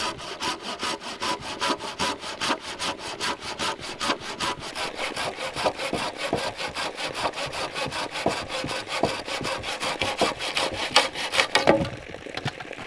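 A hand saw cuts rapidly back and forth through a wooden pole.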